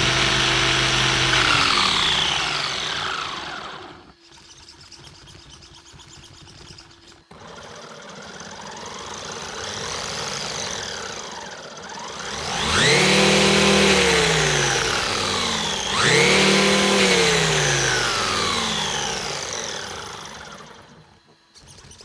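An electric motor whines loudly, revving up and winding down again and again.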